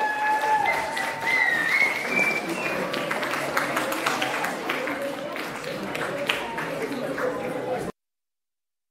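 A keyboard plays.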